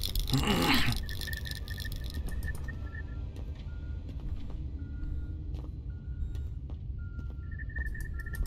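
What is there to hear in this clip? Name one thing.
A handheld scanner beeps softly.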